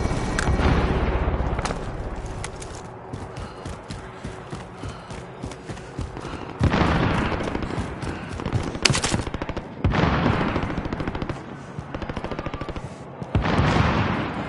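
A rifle fires loud booming shots that echo away.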